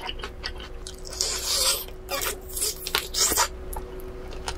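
A young woman bites into crispy chicken with a crunch.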